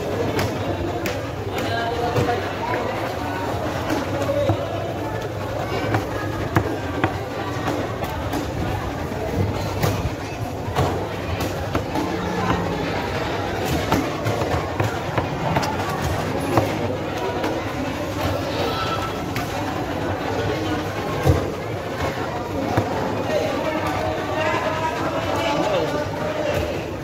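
A crowd chatters in a busy, echoing hall.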